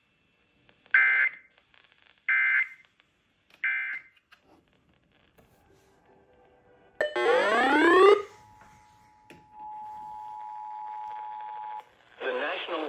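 A radio speaker plays short, loud beeping alert tones, then a rising warble and a long steady tone.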